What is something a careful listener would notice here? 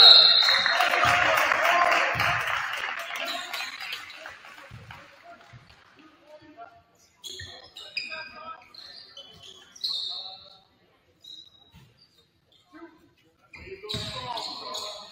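A basketball thumps on the court as players dribble.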